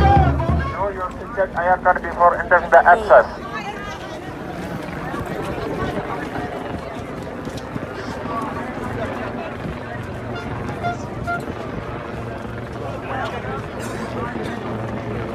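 A crowd chatters and calls outdoors.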